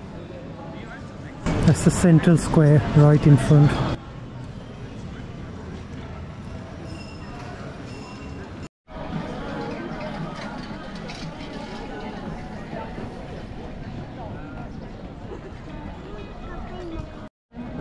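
A crowd of people chatters outdoors in a broad open square.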